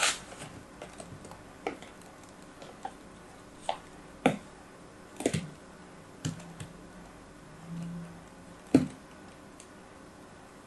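Soft sand crumbles and crunches as hands press and cut it.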